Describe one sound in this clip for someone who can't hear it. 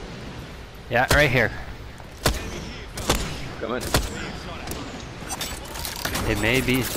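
Rapid gunfire bursts out in sharp cracks.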